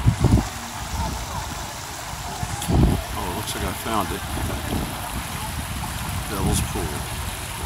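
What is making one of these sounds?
Children shout and call out playfully in the distance.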